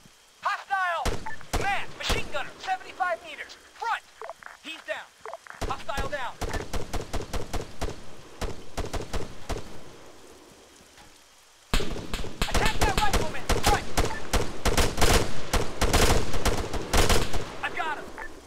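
Rifles fire rapid bursts of gunshots nearby.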